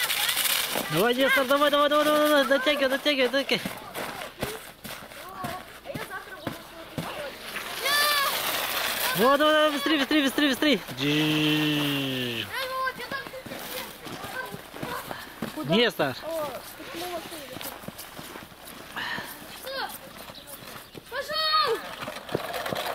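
Young children shout with excitement outdoors.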